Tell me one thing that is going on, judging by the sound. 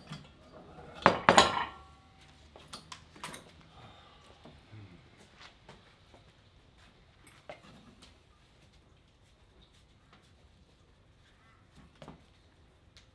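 Metal gear clinks and clanks as a cable handle is pulled.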